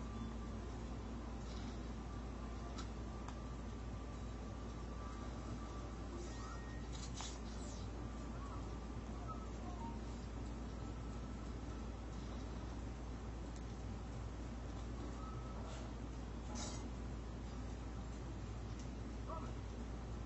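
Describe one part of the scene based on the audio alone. Faint thuds and swishes sound from a video game played on a television.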